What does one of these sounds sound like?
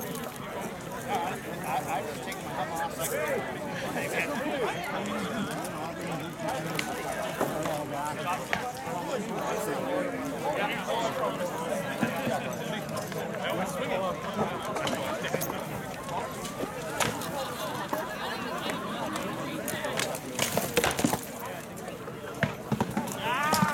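A crowd of people chatters outdoors in the background.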